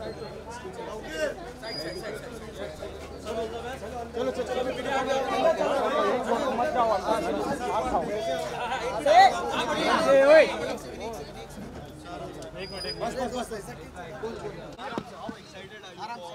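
A crowd of men talks and shouts all around, close by.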